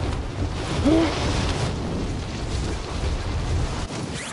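Wind rushes loudly past during a freefall.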